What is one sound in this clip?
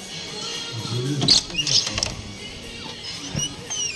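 A wooden door opens.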